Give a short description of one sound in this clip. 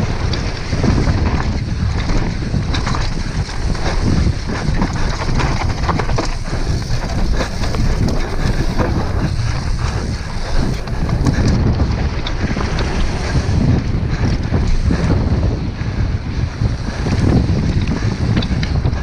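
Bicycle tyres crunch and rattle over a rough dirt trail.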